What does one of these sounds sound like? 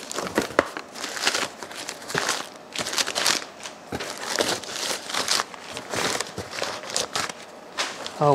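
Crumpled paper packing rustles and crinkles close by.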